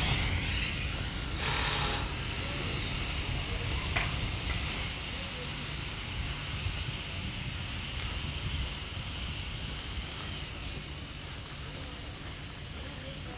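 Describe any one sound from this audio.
A small electric cart rolls along a paved path with a low rumble.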